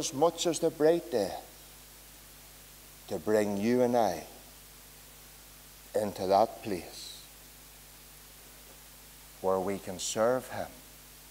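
A middle-aged man speaks slowly and calmly into a microphone, with long pauses.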